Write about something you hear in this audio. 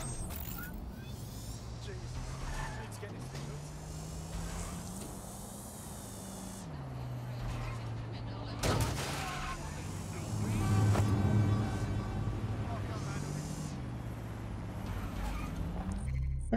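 A scooter engine hums and changes pitch as the rider speeds up and slows down.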